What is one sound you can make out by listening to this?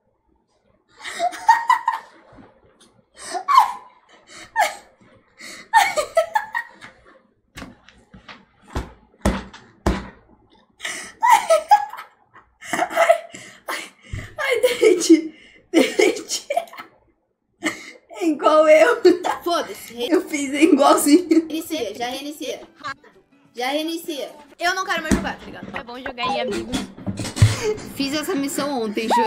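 A young woman talks and laughs with animation close to a microphone.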